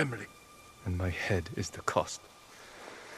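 A younger man speaks quietly and tensely, close by.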